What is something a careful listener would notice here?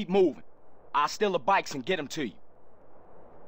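A second man answers calmly up close.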